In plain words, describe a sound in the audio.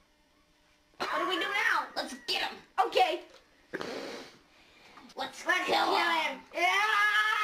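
Teenage boys talk and shout with animation close by.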